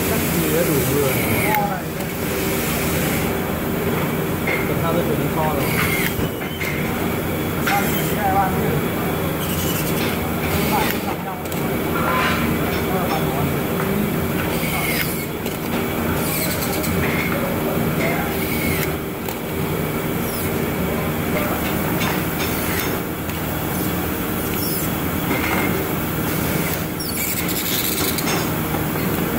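An electric screwdriver whirs in short bursts and clicks as it tightens screws.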